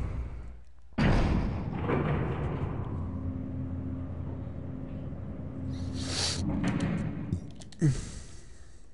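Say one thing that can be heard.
A lift hums and rumbles steadily as it moves.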